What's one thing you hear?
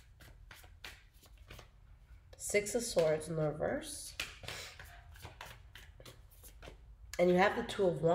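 Paper bills rustle and flick as they are counted.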